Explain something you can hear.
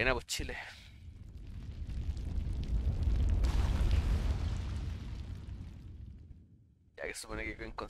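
A deep rumble swells and then fades away.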